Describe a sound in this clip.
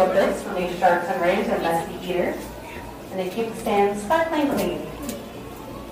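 A young person talks with animation close by.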